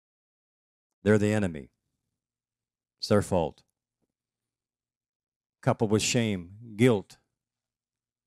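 A middle-aged man speaks through a microphone over loudspeakers, in short phrases with pauses.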